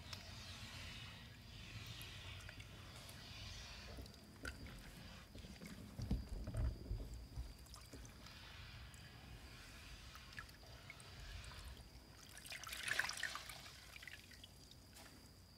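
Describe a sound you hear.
Water splashes and sloshes in a plastic tub.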